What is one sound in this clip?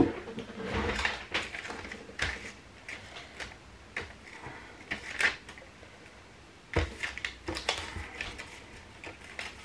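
Paper crinkles as hands fold and handle a paper bag.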